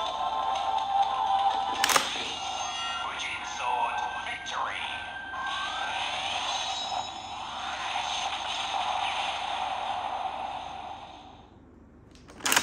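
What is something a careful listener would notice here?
A toy sword plays electronic sound effects and music through a small speaker.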